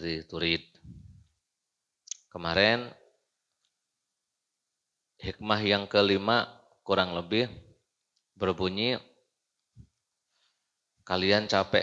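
A young man speaks calmly into a close microphone, in phrases with pauses.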